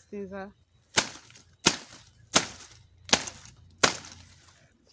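A machete chops sharply at a plant stalk.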